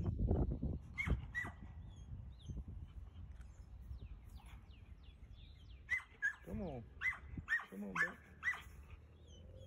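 A dog whines and yelps in short high cries.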